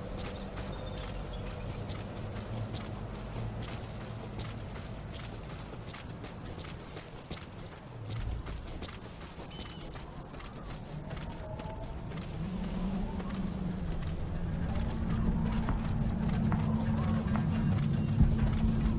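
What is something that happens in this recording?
Footsteps crunch quickly over dry dirt and gravel.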